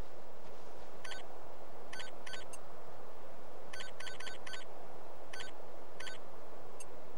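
Short electronic beeps click in quick succession.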